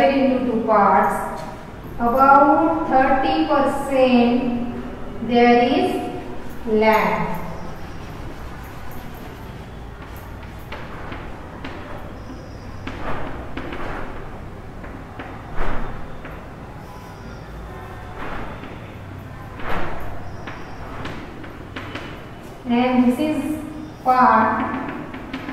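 A woman speaks calmly and clearly, as if teaching.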